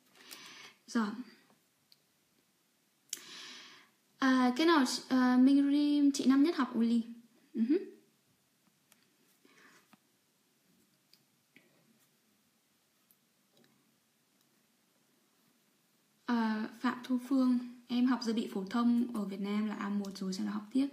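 A young woman talks calmly and close up, pausing now and then.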